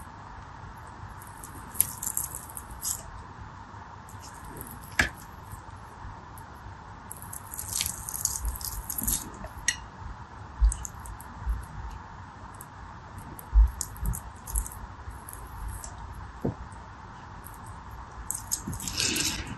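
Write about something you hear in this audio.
Fingers squeeze and squish soft water beads.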